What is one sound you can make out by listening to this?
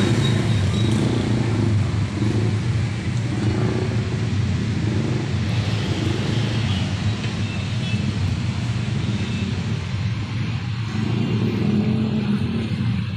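Car engines idle and rumble in slow traffic nearby.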